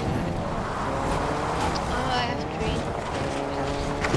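A car crashes and flips over with a thud.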